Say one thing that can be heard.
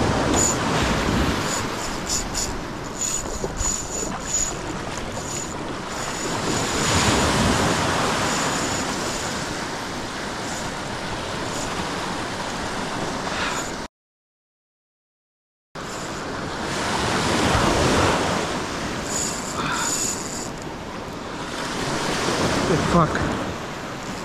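Wind blusters across the open water.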